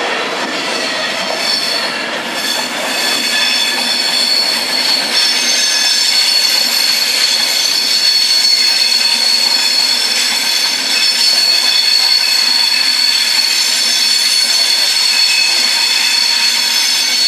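An electric train rolls by with a steady high whine.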